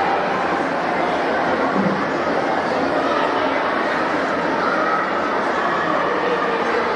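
A large crowd chatters and cheers, echoing through a big indoor hall.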